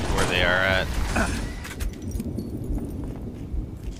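A rifle fires several quick shots.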